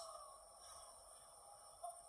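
A teenage girl talks and laughs, heard faintly through a television speaker.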